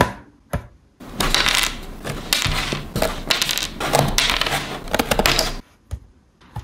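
A thin wooden board rustles and creaks as hands handle it.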